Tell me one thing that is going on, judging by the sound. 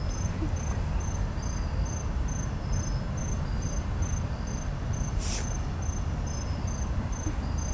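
A freight train rumbles steadily past.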